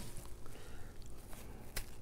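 An elderly man bites and chews food.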